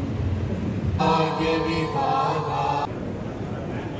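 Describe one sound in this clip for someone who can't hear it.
A group of men and women sing together into microphones.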